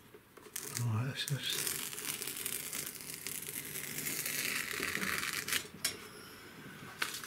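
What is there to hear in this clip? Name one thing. Masking tape peels off paper with a long tearing rasp.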